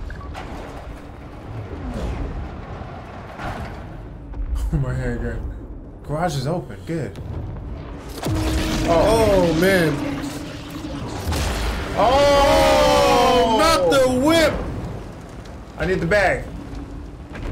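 Two young men talk with animation, close to a microphone.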